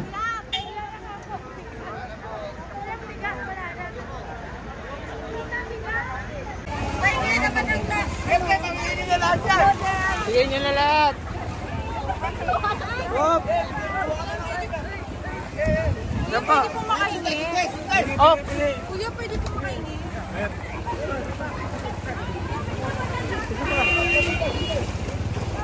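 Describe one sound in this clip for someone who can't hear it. A crowd of men and women chatter and call out close by.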